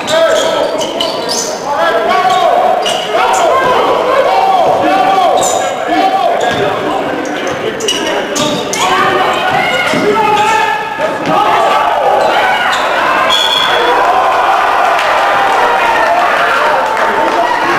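A basketball bounces on a wooden floor, echoing in a large hall.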